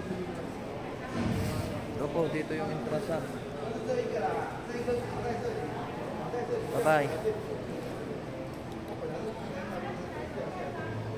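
People's voices chatter nearby in an echoing hall.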